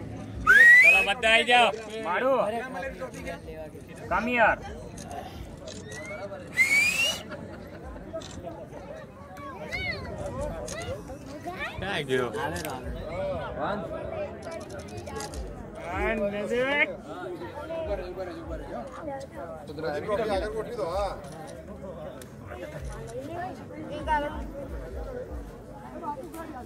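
Boys chatter and shout excitedly close by, outdoors.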